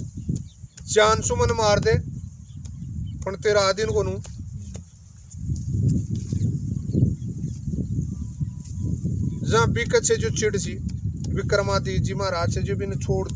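An elderly man speaks loudly and with animation close by.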